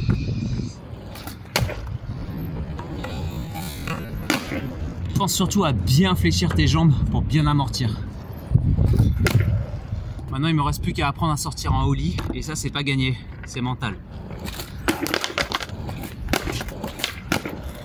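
A skateboard's wheels roll and clatter on concrete.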